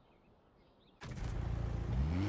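A car engine roars and revs up loudly.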